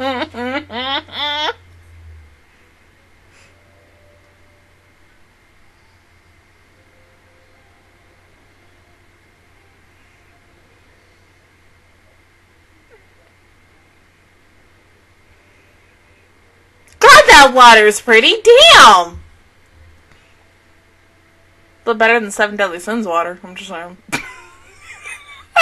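A young woman speaks excitedly into a close microphone, her voice high and breaking into squeals.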